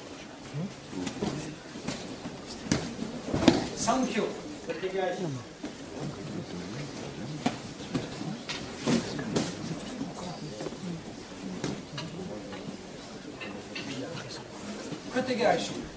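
Bodies thump and slap onto a padded mat.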